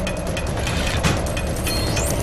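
A small machine bursts apart with a sharp crash.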